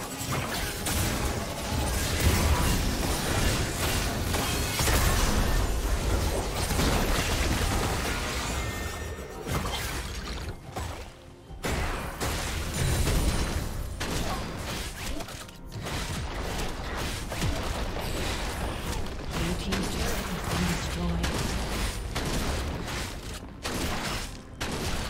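Magic blasts and clashing weapons crackle and boom in a busy fight.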